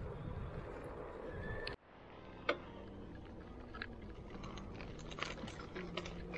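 Bicycle tyres hum on asphalt.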